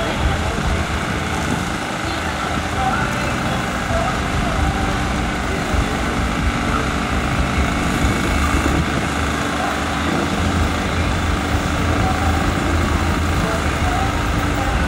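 A heavy pile-driving machine rumbles and vibrates steadily.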